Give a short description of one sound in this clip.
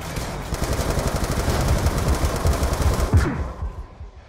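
A gun fires in rapid bursts of loud shots.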